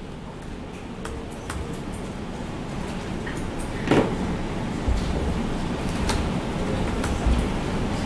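Keys click on a laptop keyboard.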